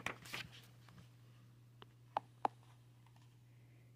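A book page turns with a soft rustle.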